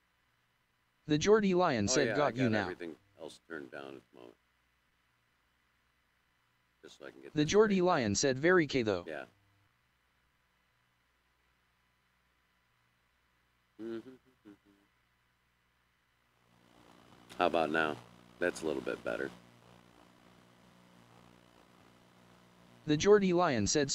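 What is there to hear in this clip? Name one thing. A middle-aged man talks casually into a microphone, in short bursts.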